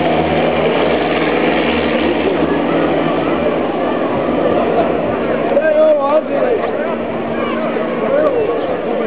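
A small propeller engine drones overhead and fades into the distance.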